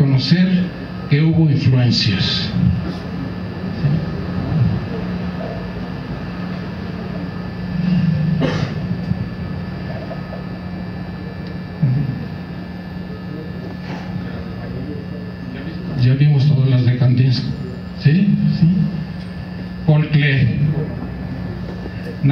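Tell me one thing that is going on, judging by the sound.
An older man speaks steadily through a microphone.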